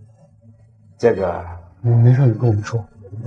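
A young man answers briefly.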